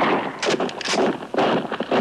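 A horse gallops over hard ground.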